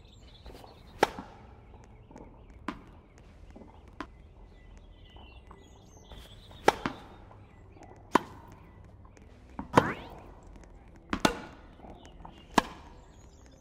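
A tennis ball is hit back and forth with sharp pops.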